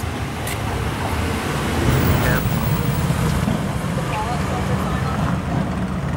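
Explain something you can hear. A car drives slowly past.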